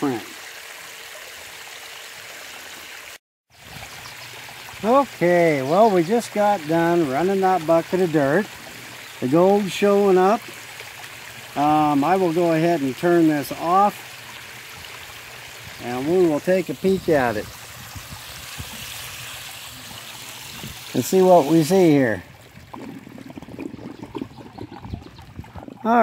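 Water rushes and splashes steadily down a shallow channel.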